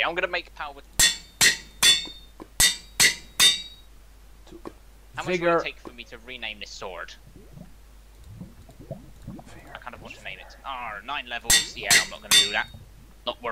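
An anvil clangs several times in quick succession.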